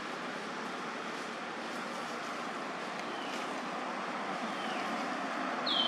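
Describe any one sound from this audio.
A young monkey chews softly on something.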